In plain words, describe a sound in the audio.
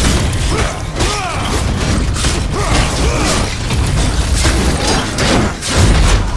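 A monster roars and growls.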